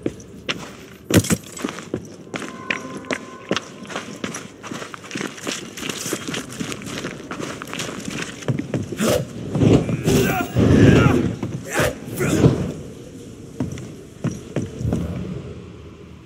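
Footsteps crunch on loose gravel and rock.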